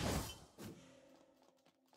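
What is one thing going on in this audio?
A heavy thud bursts out with a rush of dust.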